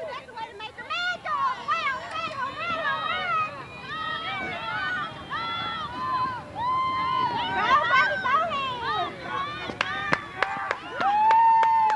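Young girls and women shout and cheer outdoors.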